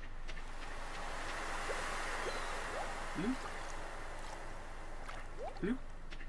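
Water splashes softly as a swimmer paddles through a river.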